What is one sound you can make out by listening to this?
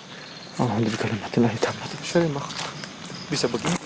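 Footsteps crunch on dry leaves nearby.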